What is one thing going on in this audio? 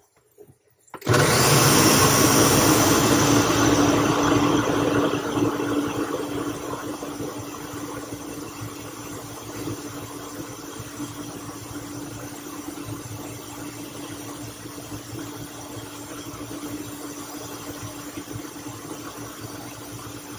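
A blender motor whirs loudly and steadily.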